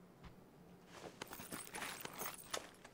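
Footsteps scuff across a hard floor.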